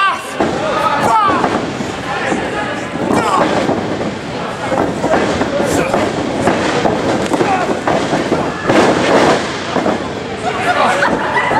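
A small crowd shouts and cheers in an echoing hall.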